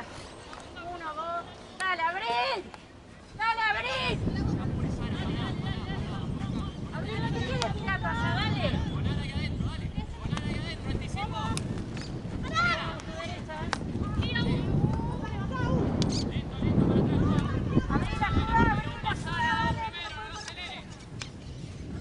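Young women shout and call out to each other across an open outdoor field.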